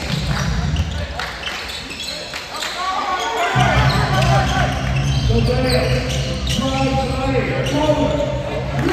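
A crowd murmurs and cheers in an echoing gym.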